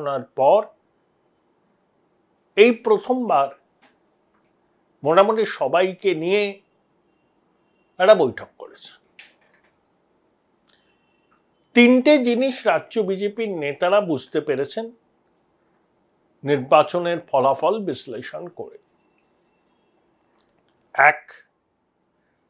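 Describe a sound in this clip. A middle-aged man speaks calmly and earnestly into a close microphone, with pauses between phrases.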